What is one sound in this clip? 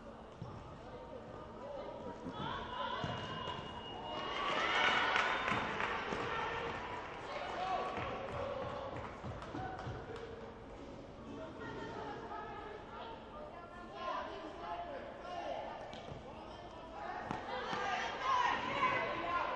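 Sneakers squeak on the hard court floor.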